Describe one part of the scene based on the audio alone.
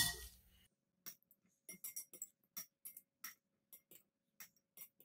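Metal tongs tap and clink lightly against glass.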